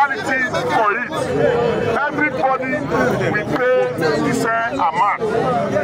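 A man speaks loudly through a megaphone.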